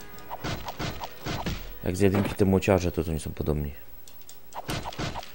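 Blows thud and smack in a fast video game fight.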